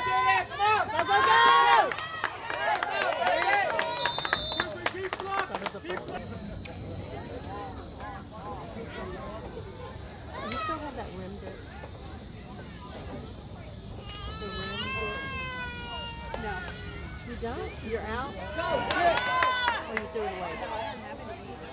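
Spectators on the sideline shout and cheer outdoors.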